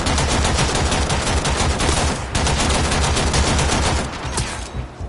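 A rifle fires in rapid bursts, echoing off hard walls.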